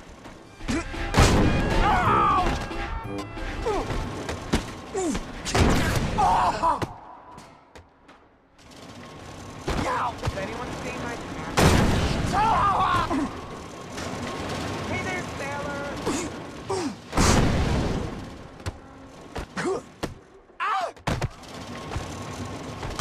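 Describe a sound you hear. Heavy thuds and crashes sound as a tumbling figure slams into obstacles.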